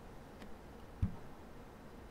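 An arm thumps down on a desk.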